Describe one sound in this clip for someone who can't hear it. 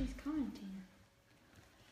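A middle-aged woman speaks close to a microphone.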